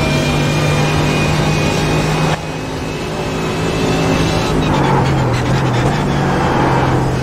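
A racing car engine roars at high revs.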